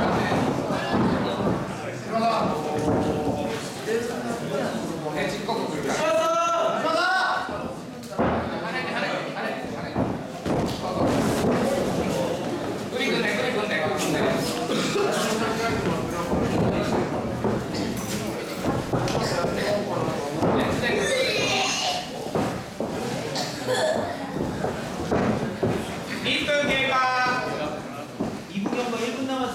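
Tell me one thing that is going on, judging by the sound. Bodies thump and shuffle on a mat.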